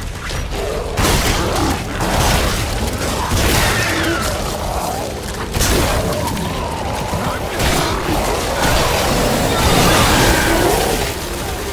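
Gunshots bang loudly and sharply.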